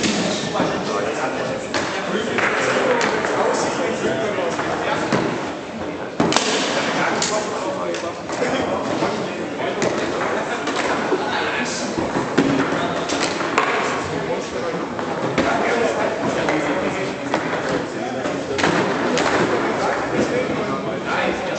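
A foosball ball clacks sharply against rods and walls of the table.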